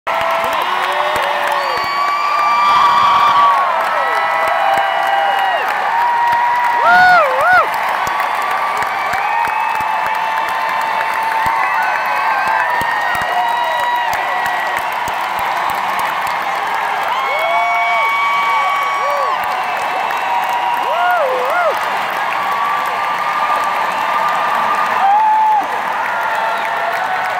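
A large crowd screams and cheers loudly and close by.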